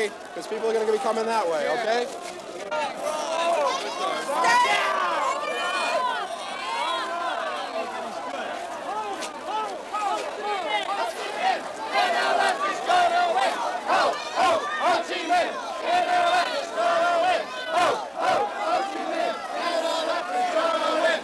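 A large crowd of men and women talks and murmurs all around, close by.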